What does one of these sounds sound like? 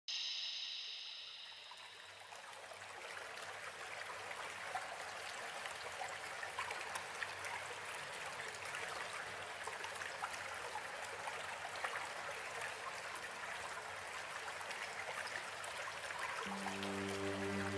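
Water gushes and splashes steadily from a spring.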